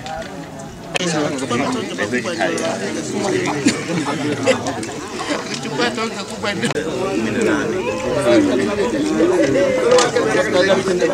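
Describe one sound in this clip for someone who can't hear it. A crowd of men and women chatters while eating.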